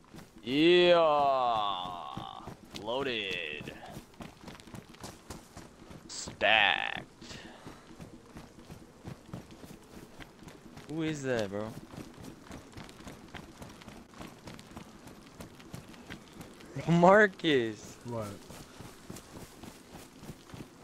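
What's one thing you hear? Footsteps run quickly on hard ground.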